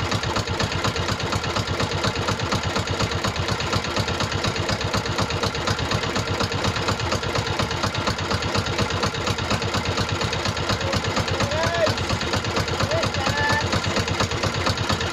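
Water splashes against the hull of a moving boat.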